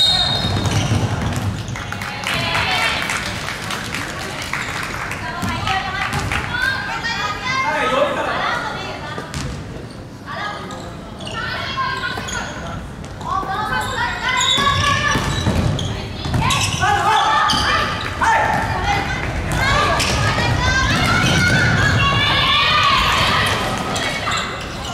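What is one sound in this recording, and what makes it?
Sneakers squeak sharply on a wooden gym floor, echoing in a large hall.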